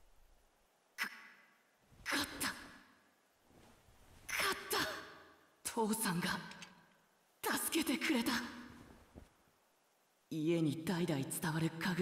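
A young man speaks in a strained, breathless voice, close up.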